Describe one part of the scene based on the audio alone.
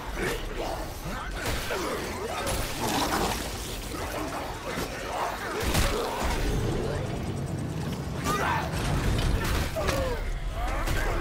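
Monsters snarl and growl.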